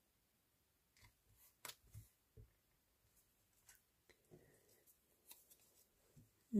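Paper rustles and taps softly as hands press and fold it.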